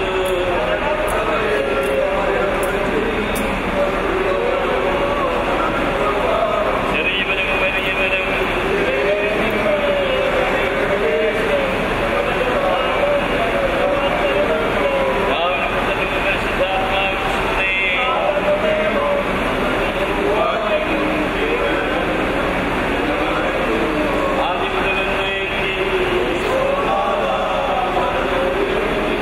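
A group of men and women sing a slow hymn together.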